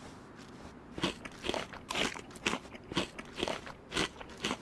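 Footsteps tread quickly on a road.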